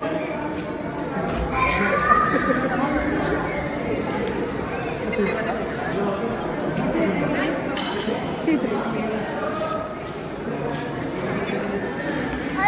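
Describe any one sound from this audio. Many men and women chatter and talk nearby.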